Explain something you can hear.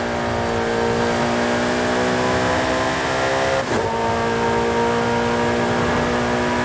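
A sports car engine roars at high revs, climbing steadily in pitch.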